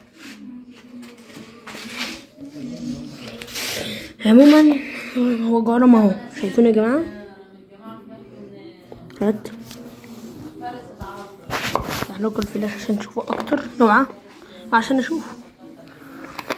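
A plastic jar scrapes and taps against a hard surface.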